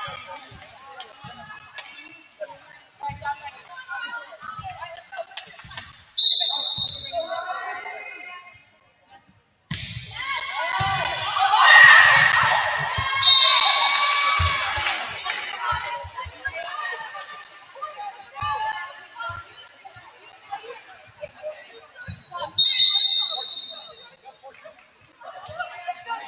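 A volleyball is struck with dull thumps.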